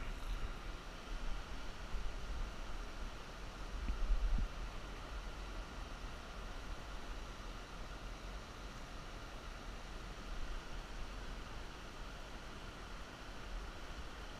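A shallow river rushes and burbles over stones.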